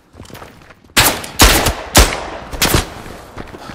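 Rifle shots ring out loudly with a sharp echo.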